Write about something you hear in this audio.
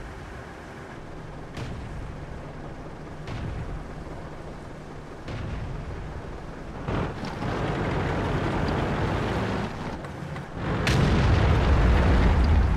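A tank engine rumbles low and steadily, growing louder.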